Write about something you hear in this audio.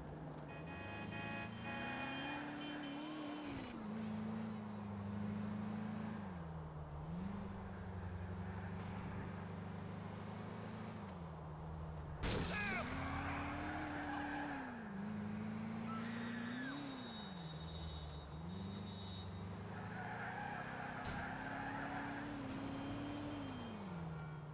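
A car engine hums steadily, rising and falling in pitch as it speeds up and slows down.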